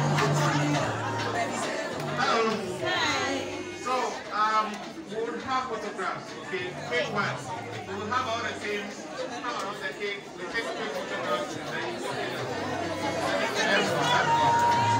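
A crowd of men and women chatter and shout excitedly in a large echoing room.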